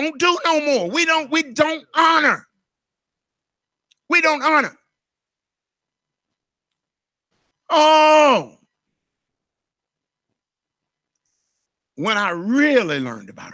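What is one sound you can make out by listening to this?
A middle-aged man speaks with animation through a microphone, in bursts with long pauses.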